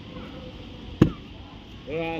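A heavy stone block thuds down onto damp ground.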